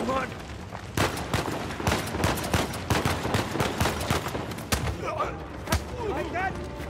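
Gunshots ring out in an echoing hall.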